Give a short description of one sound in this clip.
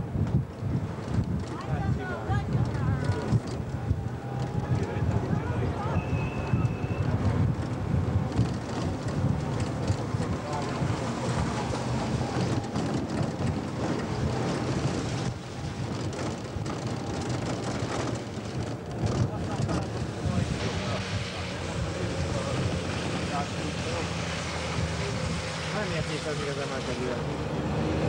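A car engine rumbles steadily from inside a moving car.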